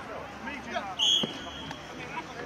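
A referee's whistle blows a short sharp blast.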